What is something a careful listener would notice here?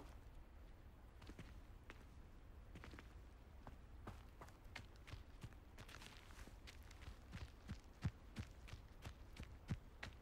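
Footsteps crunch through grass and brush.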